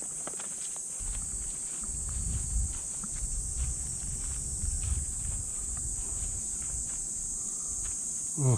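Footsteps swish and thud through grass outdoors.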